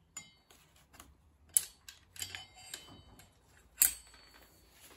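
A ratchet wrench clicks against metal parts.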